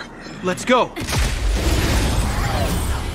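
A weapon swishes through the air in a fast, rushing strike.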